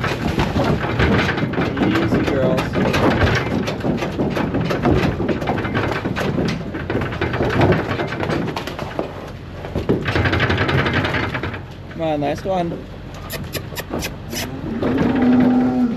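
Cow hooves clatter and shuffle on a wet hard floor.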